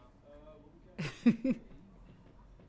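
A woman laughs loudly into a microphone.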